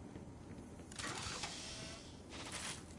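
A heavy metal chest lid creaks open with a hiss.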